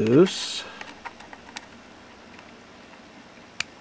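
A screwdriver taps and scrapes lightly against a small metal screw.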